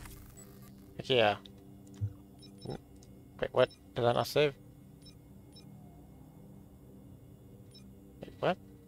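Short electronic chimes sound again and again.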